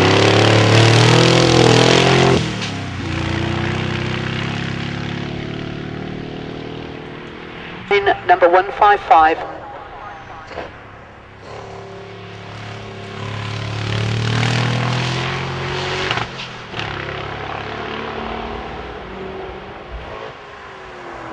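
A V8 sports car roars past at full throttle and fades into the distance.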